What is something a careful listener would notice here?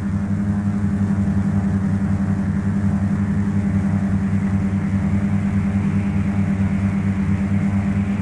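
A small propeller plane's engine drones steadily and loudly.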